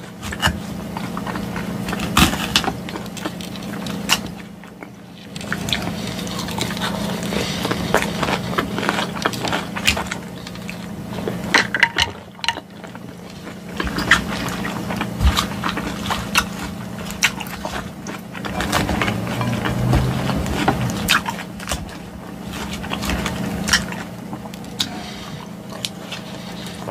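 A fork scrapes and clinks against a glass bowl.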